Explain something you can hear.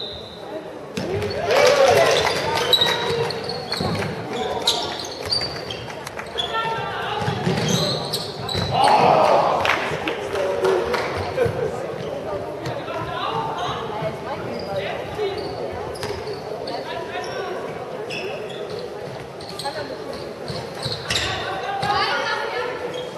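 Young girls shout and call out across a large echoing hall.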